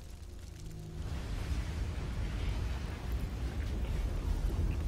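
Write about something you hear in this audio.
A low, rumbling ambience with a faint wind hums outdoors.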